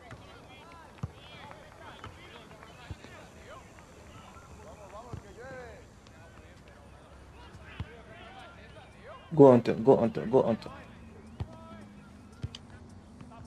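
A football is kicked with short, dull thuds now and then.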